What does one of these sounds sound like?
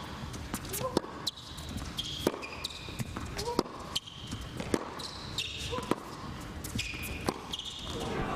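Tennis rackets strike a ball back and forth in a steady rally.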